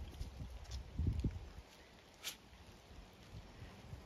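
A dog sniffs closely at plants.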